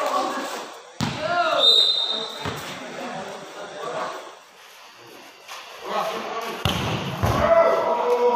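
A volleyball is spiked with a sharp smack.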